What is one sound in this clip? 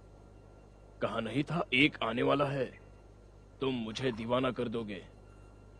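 A man speaks in a low, calm voice nearby.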